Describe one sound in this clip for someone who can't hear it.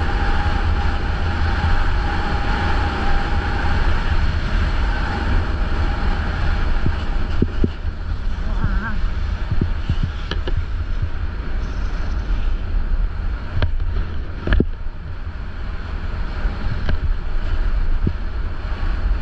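Wind rushes loudly past, buffeting the microphone.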